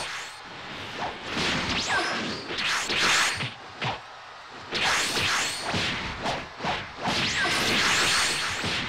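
Punches and kicks land with sharp, heavy impacts in quick bursts.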